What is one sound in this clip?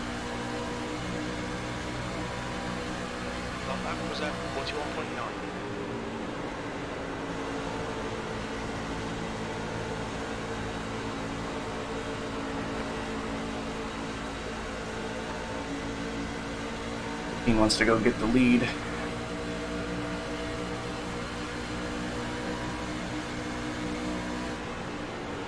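A racing engine drones steadily at high speed.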